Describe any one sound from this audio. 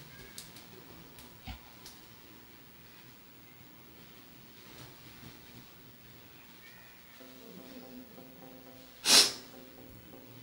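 A towel rubs softly against a face.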